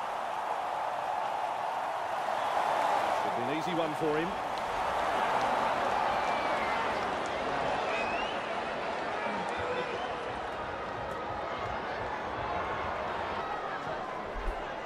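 A large stadium crowd roars and murmurs steadily.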